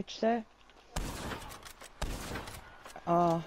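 A rifle fires two loud shots that echo.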